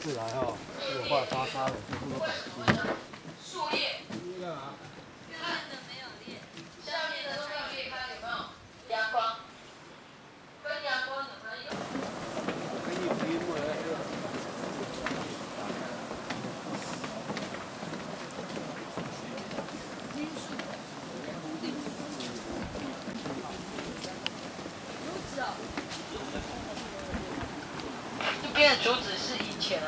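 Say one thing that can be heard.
Men and women chat nearby as a group walks.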